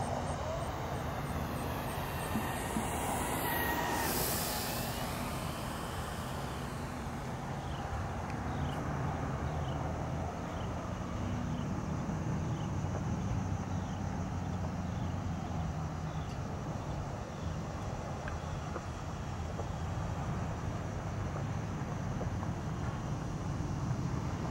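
A model airplane engine buzzes overhead in the distance.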